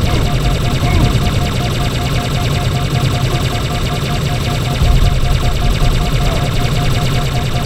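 An energy beam weapon fires with a steady, crackling roar.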